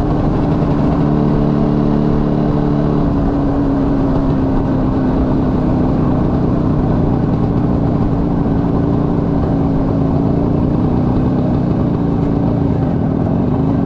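A small motorcycle engine hums steadily at speed.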